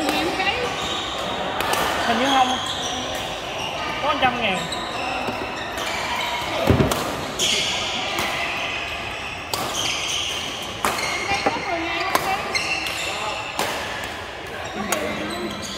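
Rackets strike a shuttlecock with sharp pops in a large echoing hall.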